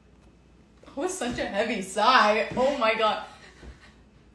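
A young woman laughs loudly close by.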